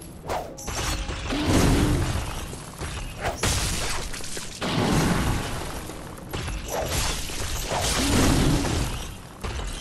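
Blades slash and strike with sharp impacts.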